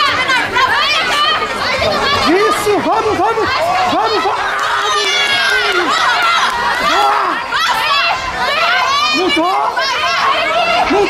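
Spectators shout and cheer excitedly in a large echoing hall.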